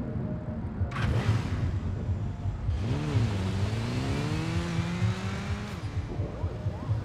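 A motorcycle engine revs and roars past.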